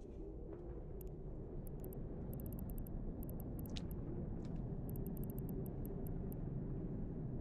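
A spaceship's guns fire in rapid bursts.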